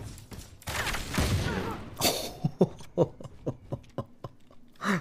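Gunfire cracks in rapid shots.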